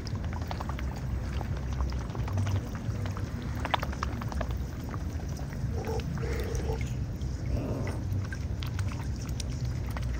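Water laps and ripples close by.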